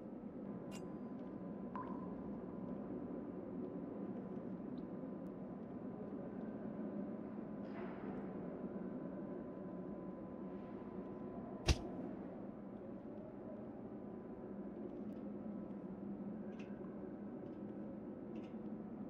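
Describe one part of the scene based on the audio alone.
Soft clicks and rustles sound as game inventory items are moved about.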